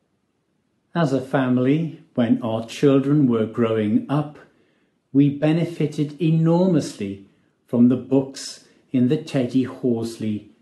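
An older man speaks with animation through a microphone.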